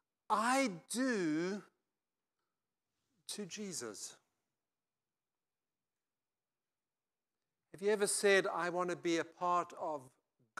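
An older man speaks with animation through a microphone, pausing between phrases.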